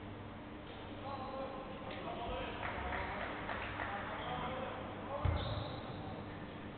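People chatter faintly in a large echoing hall.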